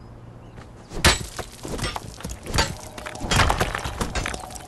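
Rocks crumble and clatter as they break.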